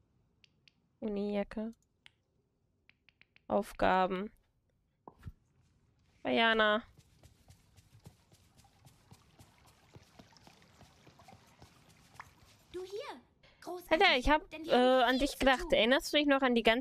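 A young woman talks with animation into a microphone, close by, in short bursts.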